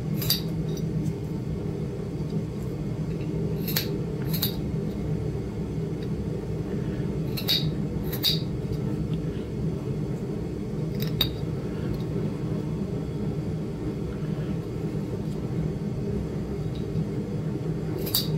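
A small pneumatic engraving tool buzzes steadily against stone.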